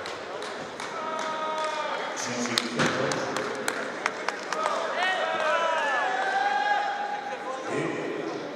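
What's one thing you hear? Men's voices call out across a large echoing hall.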